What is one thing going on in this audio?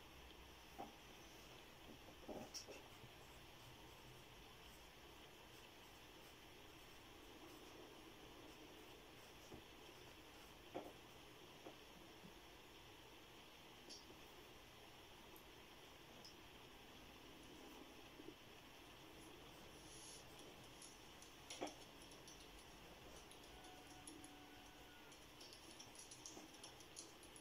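A pencil taps lightly on paper now and then.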